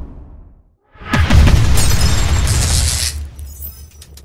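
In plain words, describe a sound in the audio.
Flames burst up with a loud roaring whoosh.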